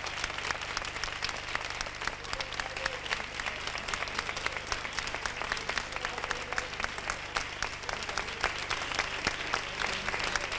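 A crowd claps steadily and fast.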